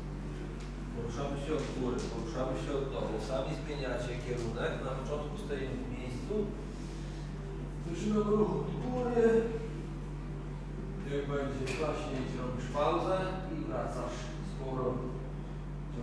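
A man speaks calmly to a group nearby.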